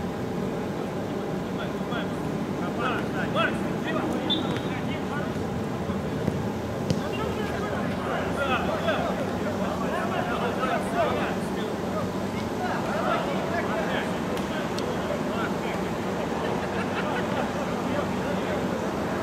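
Players shout to each other from a distance outdoors.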